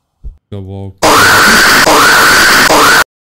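A loud, harsh screech blares suddenly and pulses.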